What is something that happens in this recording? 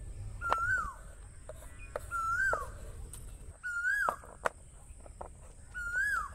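A knife cuts through fruit and taps on a wooden board.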